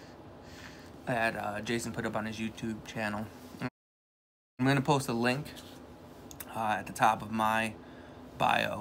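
A man speaks close by with animation.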